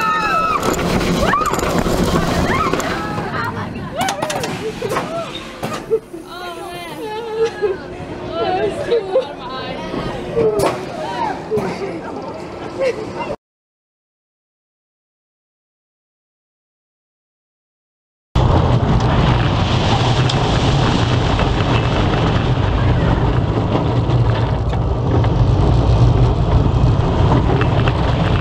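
A roller coaster train rumbles along its track.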